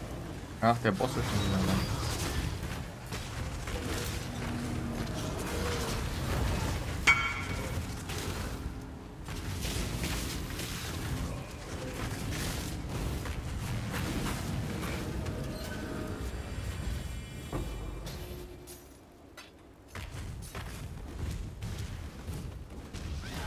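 Spells crackle and explode in a game.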